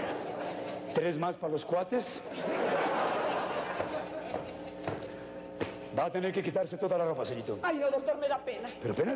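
A man speaks loudly on a stage in a large hall.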